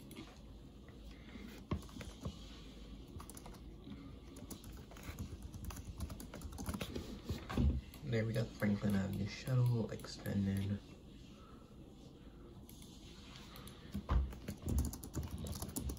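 Fingertips tap lightly on a touchscreen.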